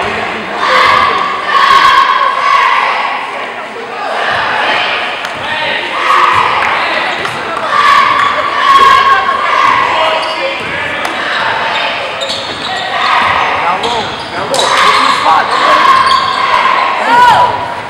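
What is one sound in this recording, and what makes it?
A basketball bounces on a wooden floor.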